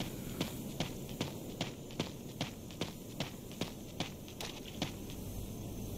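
Footsteps tread at a steady pace.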